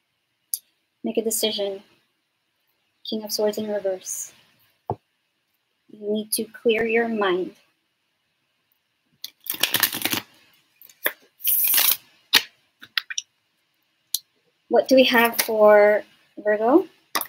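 A young woman speaks calmly and closely into a microphone, in short phrases.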